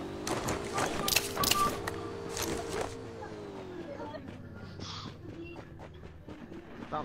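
A motorbike engine hums and then winds down.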